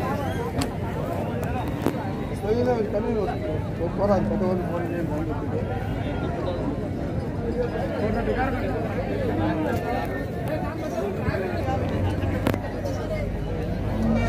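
A crowd of men talks and calls out all around, outdoors.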